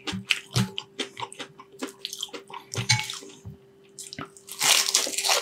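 Fingers crackle against crispy fried batter.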